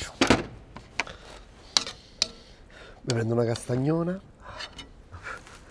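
A metal spoon clinks and scrapes against a pan.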